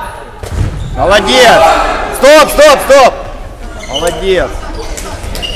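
Young people shout loudly in a large echoing hall.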